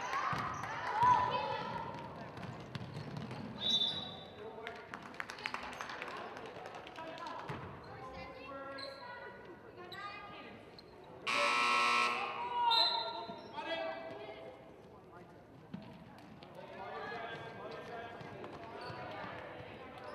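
Young women players call out to each other across an echoing gym.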